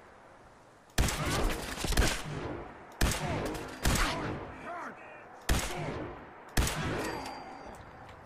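Rifle shots fire in quick bursts with ringing echoes.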